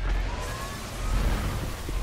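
A gun fires a shot with a sharp crack.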